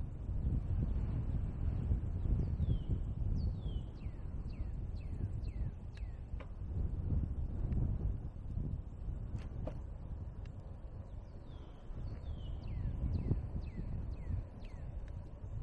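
Wind rumbles steadily outdoors while moving along.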